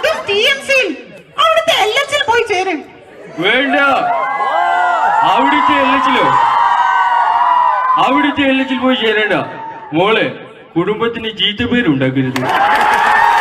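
Young men speak loudly and theatrically on a stage.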